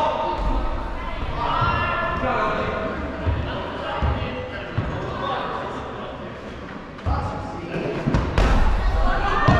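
Several players shout and call out to each other in a large echoing hall.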